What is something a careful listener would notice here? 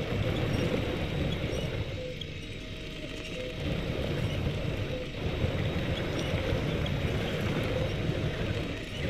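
Mud and water splash under tyres.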